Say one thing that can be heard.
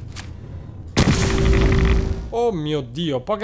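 A laser gun fires in a rapid, buzzing burst.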